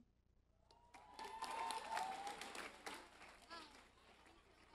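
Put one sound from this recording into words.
People clap.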